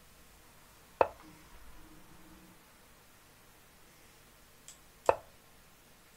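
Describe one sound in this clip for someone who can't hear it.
A sharp click sounds from an online chess app as a piece is moved.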